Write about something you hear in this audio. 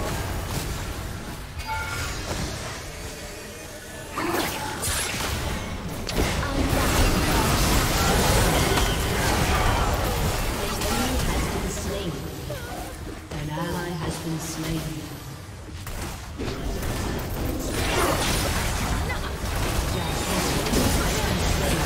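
Game spell effects whoosh and crackle in a busy fight.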